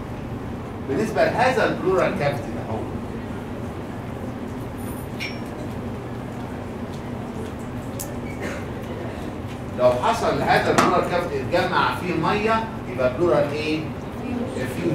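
A middle-aged man lectures calmly through a microphone.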